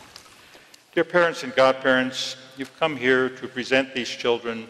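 An elderly man reads out calmly nearby.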